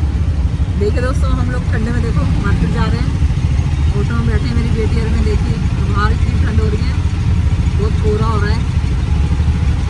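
A woman speaks cheerfully up close.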